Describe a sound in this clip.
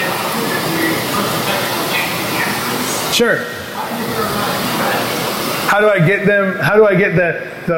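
A man speaks into a microphone in a large echoing room.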